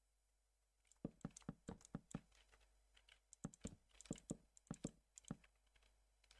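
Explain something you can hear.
Wooden blocks thud softly as they are placed one after another in quick bursts.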